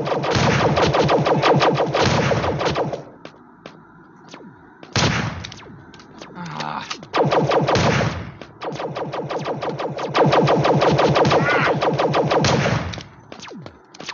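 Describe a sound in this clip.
A rapid burst of gunfire rattles again and again.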